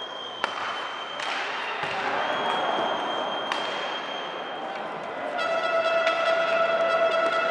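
Skate blades scrape across the ice.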